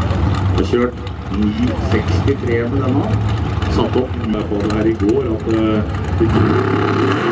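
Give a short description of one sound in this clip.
A dragster engine revs and roars loudly.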